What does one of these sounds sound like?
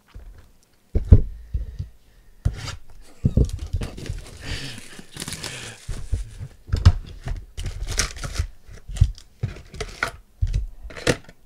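Cardboard scrapes and taps as a box is handled.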